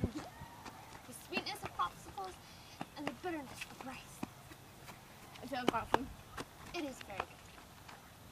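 A young woman talks casually close by, outdoors.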